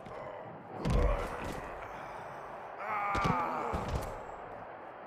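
A body slams heavily onto a hard floor.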